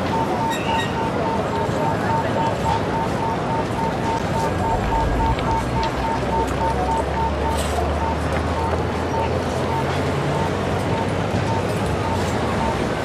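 City traffic hums steadily.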